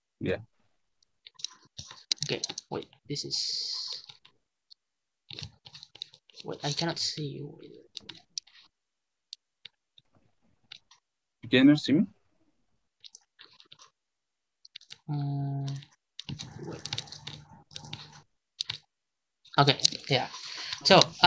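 A second young man speaks calmly over an online call.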